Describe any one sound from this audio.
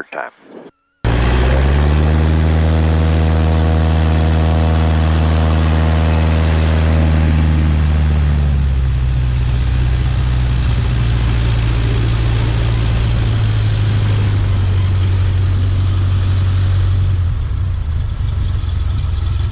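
A small propeller plane's engine roars loudly and steadily close by.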